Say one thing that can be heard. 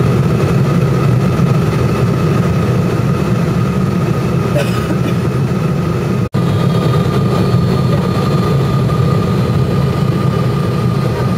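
A jet engine roars steadily with a constant low rumble and a high hum, heard from inside an airliner cabin.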